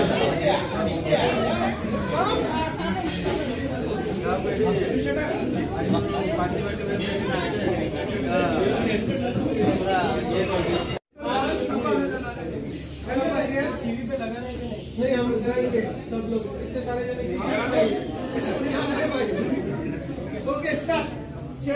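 A crowd of men and women chatter at once.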